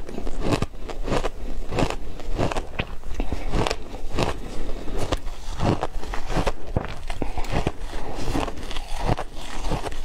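A young woman crunches shaved ice loudly and close up.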